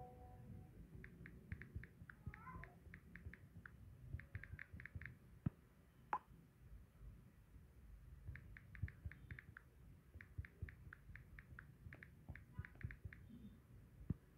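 Phone keyboard taps click quickly in bursts.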